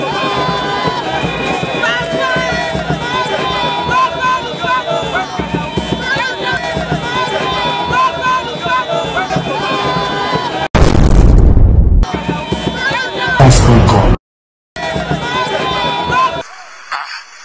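A crowd sings and chants loudly outdoors.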